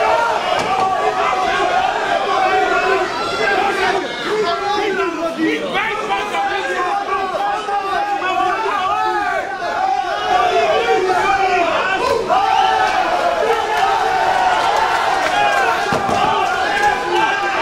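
A crowd murmurs and shouts around a ring.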